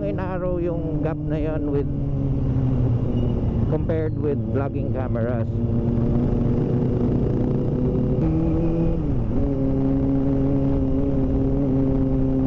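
Wind rushes past while riding.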